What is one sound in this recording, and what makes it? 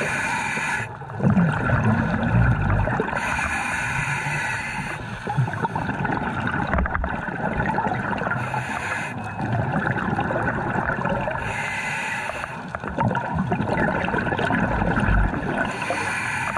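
Water murmurs and rumbles with a muffled underwater hush.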